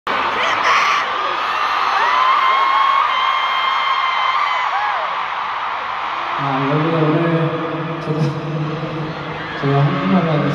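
A large crowd screams and cheers in a huge open arena.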